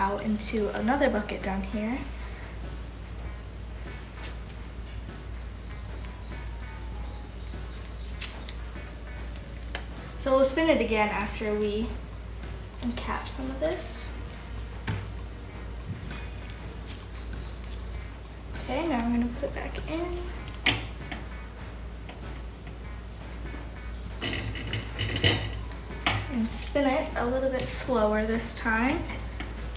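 A young girl talks calmly, close by.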